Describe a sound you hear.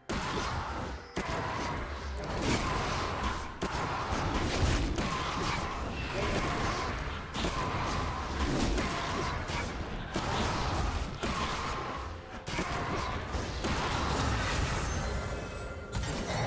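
Sword clashes and magic blasts ring out in a fast fight.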